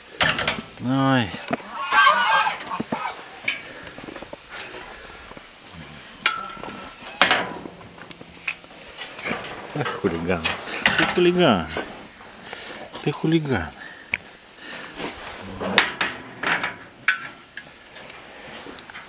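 A metal cage rattles.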